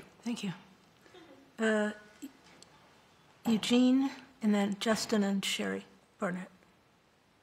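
A woman speaks briefly through a microphone.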